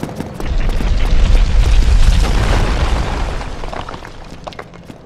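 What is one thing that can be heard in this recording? A stone wall crashes down and rubble tumbles.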